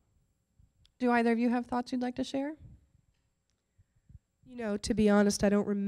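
A woman speaks with animation through a microphone.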